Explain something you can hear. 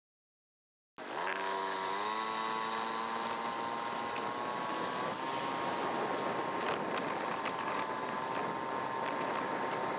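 A motor scooter engine hums steadily.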